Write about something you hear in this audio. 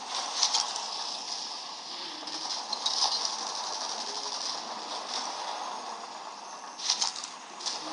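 Gunfire crackles in short bursts.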